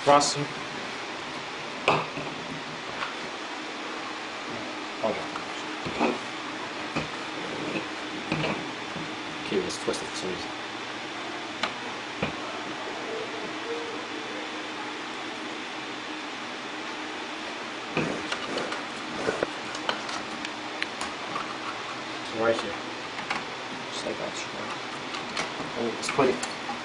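Plastic connectors click and rattle as cables are handled.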